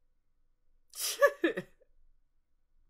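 A young man laughs briefly close by.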